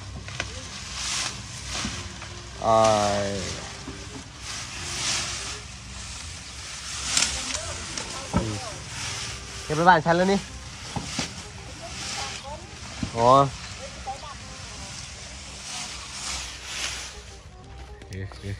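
Dry leaves rustle and crackle as a young elephant pushes into a pile of cut stalks.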